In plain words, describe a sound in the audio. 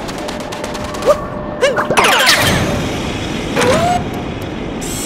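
Chiming game sound effects ring out.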